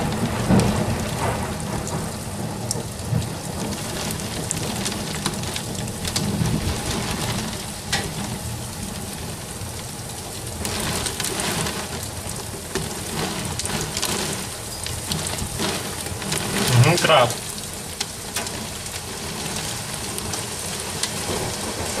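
Raindrops patter against a window pane.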